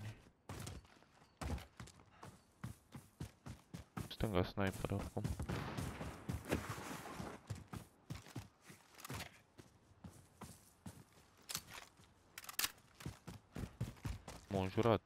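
Footsteps run quickly over dry grass and dirt.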